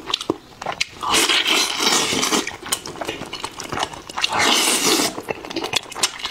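A man slurps food noisily close to a microphone.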